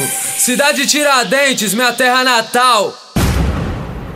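A young man sings with animation over music.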